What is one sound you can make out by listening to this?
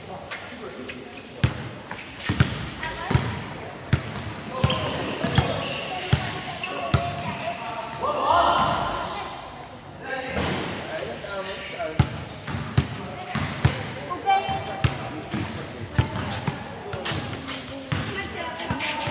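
Young men shout and call to each other across an echoing court.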